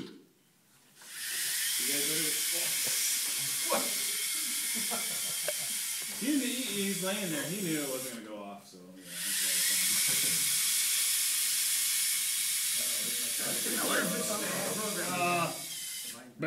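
Small robot motors whir in a steady high hum.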